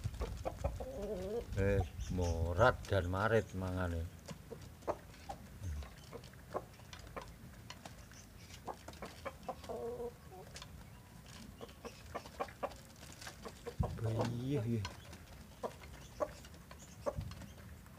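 Chickens peck at food with quick light taps.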